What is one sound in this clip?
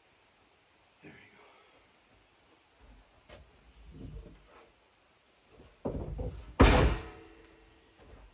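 A metal chair scrapes and clatters as it is moved.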